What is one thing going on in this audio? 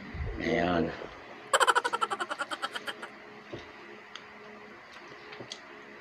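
Two men chew and smack their lips while eating.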